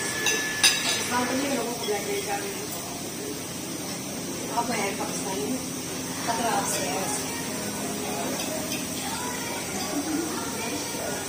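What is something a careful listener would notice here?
A woman talks casually nearby.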